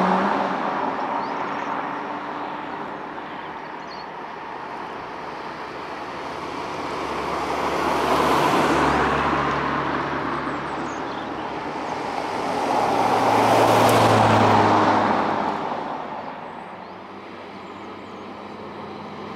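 Cars drive up a road on asphalt and pass close by, one after another.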